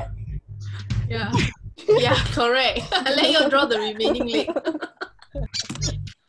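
Young women laugh over an online call.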